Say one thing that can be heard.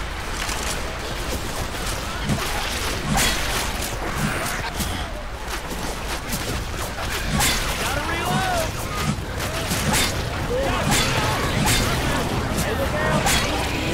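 A blade swings and slashes with wet thuds.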